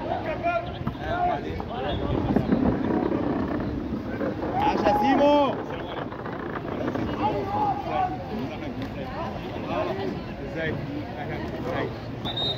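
Men shout and call out to one another outdoors.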